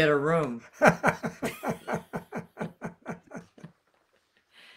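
An elderly man laughs heartily into a microphone.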